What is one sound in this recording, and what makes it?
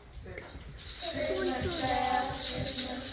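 A group of young children sings together.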